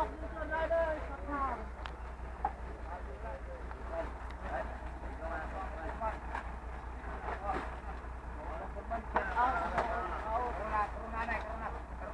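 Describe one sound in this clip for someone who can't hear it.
Several young men and women talk and call out to each other nearby, outdoors.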